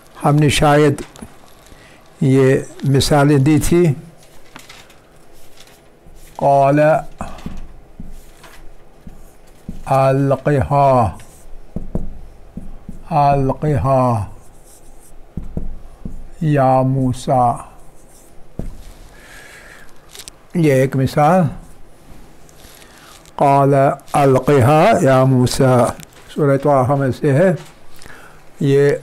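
An elderly man speaks slowly and clearly, close by.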